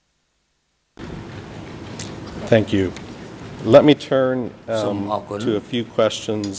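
An older man reads out calmly into a microphone.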